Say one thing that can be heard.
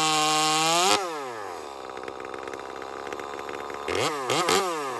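A chainsaw idles with a low rattle.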